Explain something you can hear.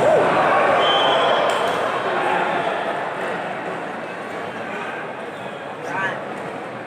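A large crowd cheers and shouts loudly in an echoing hall, slowly quietening.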